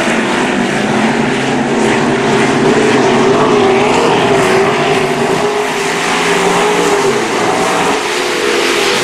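Race car engines roar loudly, rising and falling in pitch, outdoors.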